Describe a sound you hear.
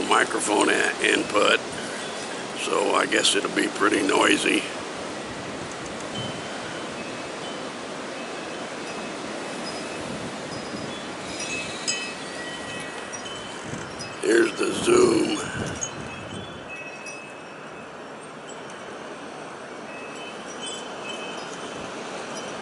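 Wind blows steadily through bare trees outdoors.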